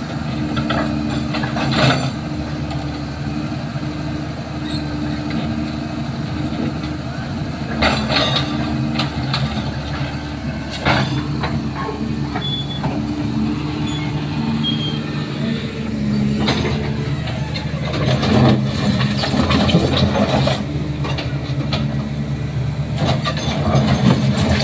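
A metal excavator bucket scrapes and clanks against rocks and rubble.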